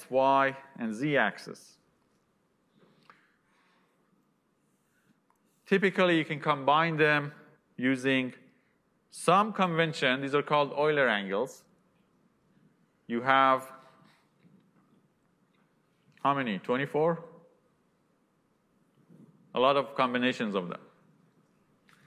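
A young man lectures calmly through a microphone, with pauses between phrases.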